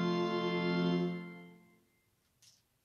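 A woman sings a short phrase close by.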